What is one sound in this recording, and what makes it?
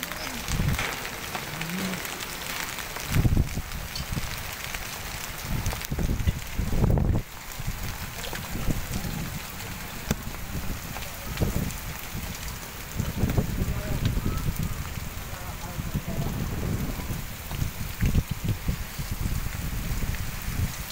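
Hail pelts the ground heavily and steadily.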